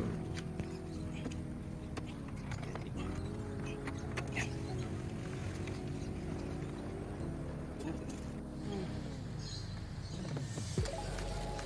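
Plastic clicks and creaks as a car door panel is pried loose.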